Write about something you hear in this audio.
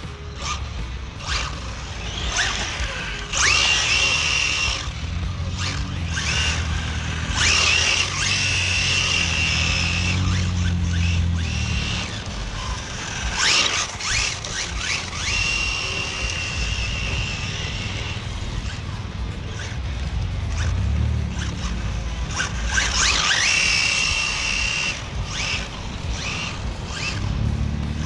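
A small remote-control car's electric motor whines, rising in pitch as it speeds up and fading as it drives away.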